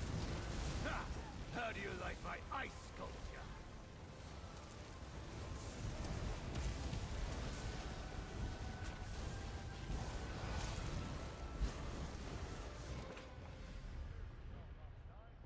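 Spell blasts crackle and boom in a game battle.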